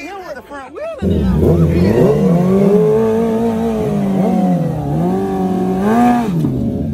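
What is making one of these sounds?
A motorcycle engine revs loudly and holds a high roar.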